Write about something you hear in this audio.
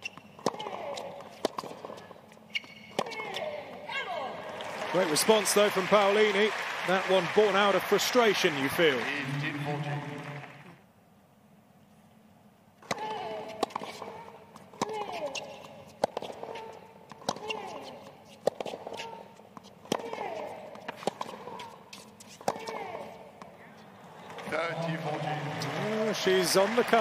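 Tennis balls are struck hard with rackets, in a quick back-and-forth rhythm.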